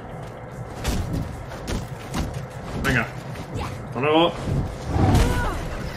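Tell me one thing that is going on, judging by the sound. Energy blasts crackle and whoosh.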